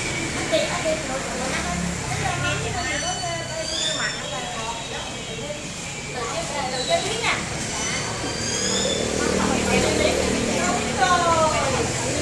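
A young man speaks loudly to a small crowd nearby.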